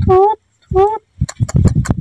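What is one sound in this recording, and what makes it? A baby monkey squeals in short, high cries.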